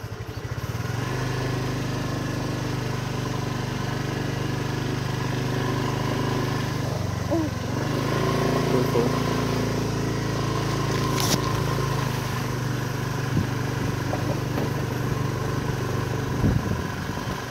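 A small motorbike engine hums steadily up close.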